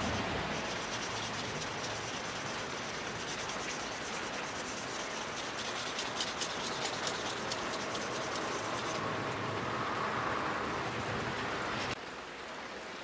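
Fine sandpaper rasps rhythmically as a piece of wood is rubbed back and forth across it.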